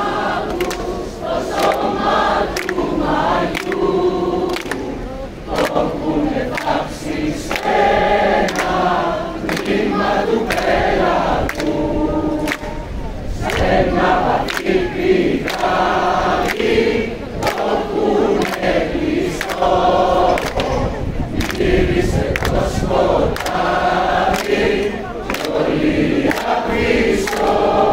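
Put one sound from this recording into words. A large crowd of men and women sings together loudly outdoors.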